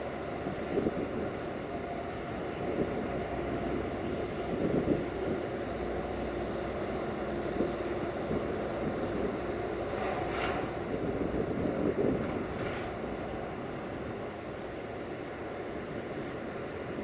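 A diesel locomotive rumbles as it slowly approaches pulling a freight train.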